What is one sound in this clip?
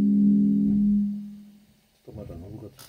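A low electric bass note rings out and slowly fades away.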